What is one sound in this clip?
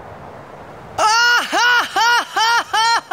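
A young man calls out loudly in a series of rising whoops.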